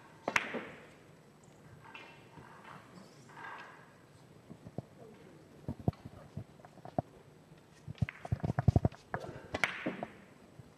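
Billiard balls knock against each other and roll across the table.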